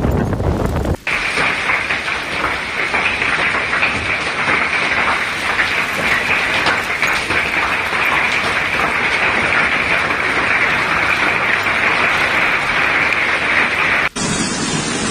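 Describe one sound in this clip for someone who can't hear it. Heavy rain pours down onto a tiled roof.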